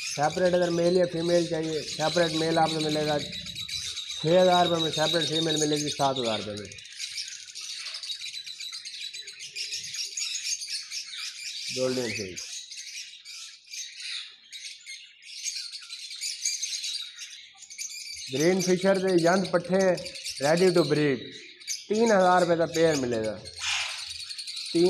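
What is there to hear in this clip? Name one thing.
Many small birds chirp and twitter constantly nearby.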